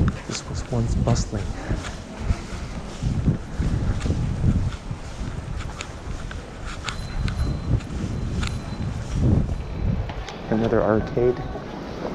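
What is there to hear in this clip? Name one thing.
Footsteps walk steadily on pavement.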